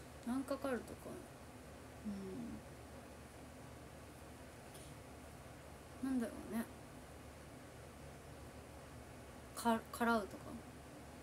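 A young woman speaks softly and briefly, close to the microphone, with pauses between words.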